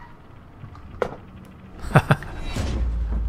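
A small object drops and thuds onto a wooden floor.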